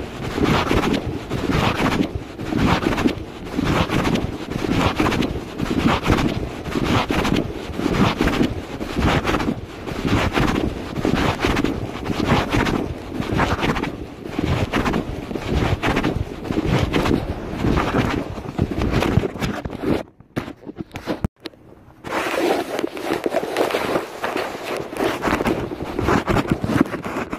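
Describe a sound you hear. Footsteps strike pavement at a steady walking pace.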